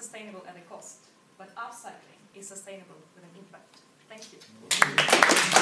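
A young woman speaks calmly to an audience.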